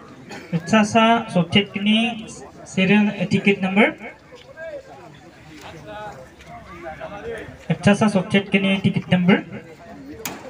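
A man calls out loudly, announcing to a crowd outdoors.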